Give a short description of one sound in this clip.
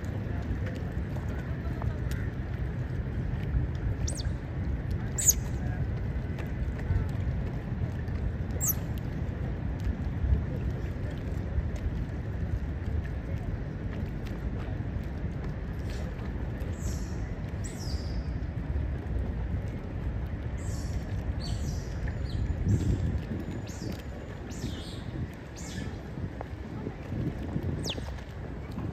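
Water laps and ripples steadily outdoors in wind.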